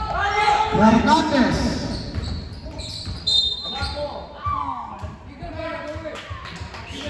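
Young players shout and call out across a large echoing gym.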